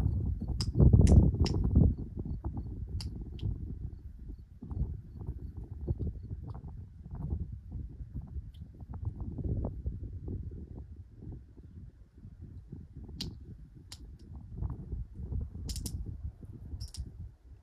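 Wind gusts against the microphone outdoors.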